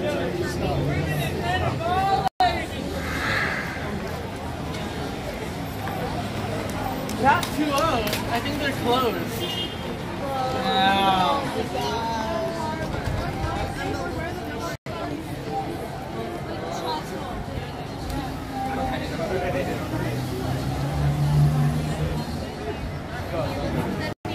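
A crowd of young men and women talks and shouts outdoors.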